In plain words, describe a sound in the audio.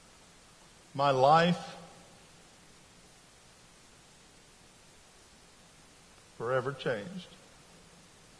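A man speaks a few short words loudly through a microphone in a large hall.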